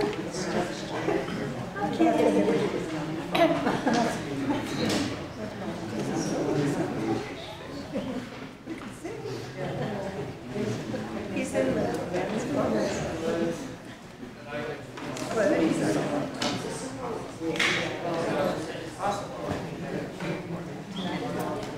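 A crowd of adults murmurs and chats in a large echoing hall.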